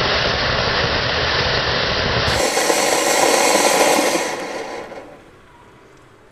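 A firework fountain sprays sparks with a loud fierce hiss that fades away.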